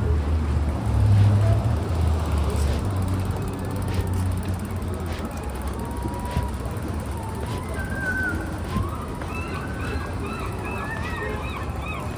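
Traffic rumbles steadily along a wet city street.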